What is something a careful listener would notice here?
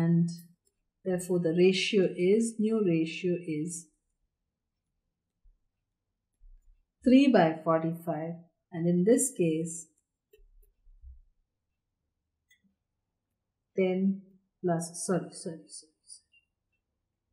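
A woman speaks calmly into a close microphone, explaining in short bursts with pauses.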